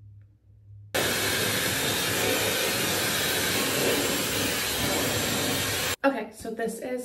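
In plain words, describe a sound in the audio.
A hair dryer blows with a loud steady roar.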